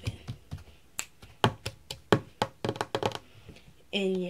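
Fingers tap rapidly on a table close by.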